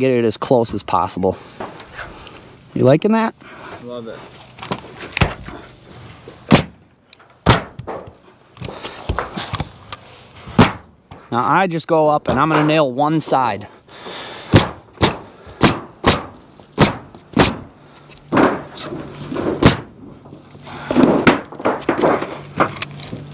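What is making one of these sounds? Underlayment crinkles as it is unrolled.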